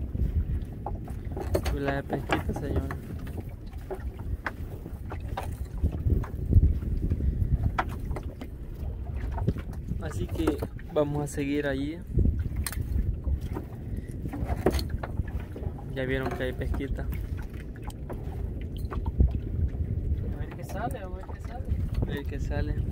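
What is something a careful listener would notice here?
A fishing net rustles and clicks as a man pulls it over the side of a boat.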